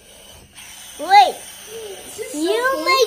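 A little girl speaks close by.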